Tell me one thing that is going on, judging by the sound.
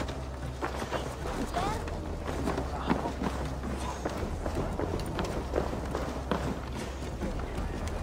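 Footsteps run quickly over stone and wooden boards.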